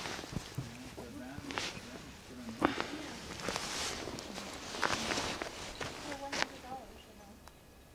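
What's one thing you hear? A dog groans softly.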